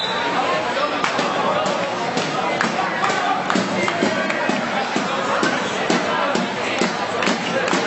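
Many hands clap in a crowd.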